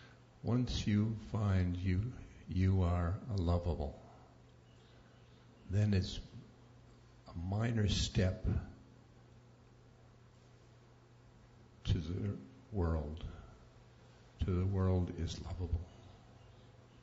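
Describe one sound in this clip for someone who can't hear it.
An elderly man speaks slowly and calmly into a microphone, in short phrases with long pauses.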